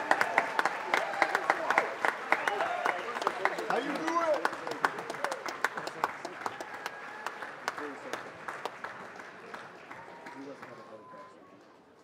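A band plays lively music.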